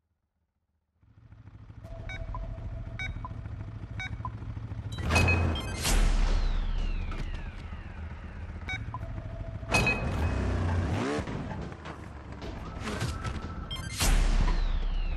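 A motorbike engine idles and revs.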